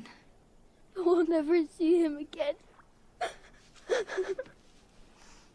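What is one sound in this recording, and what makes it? A woman cries out and sobs in distress, close by.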